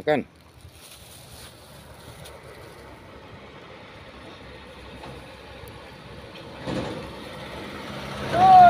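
A truck drives past on a road, growing louder as it nears.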